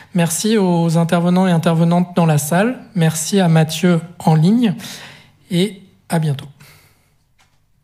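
A young man speaks into a microphone in a large hall.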